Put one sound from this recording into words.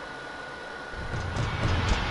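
Game music and effects start up loudly.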